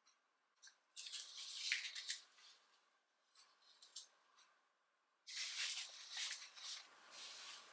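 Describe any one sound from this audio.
A stiff sheet of card rustles as it is handled.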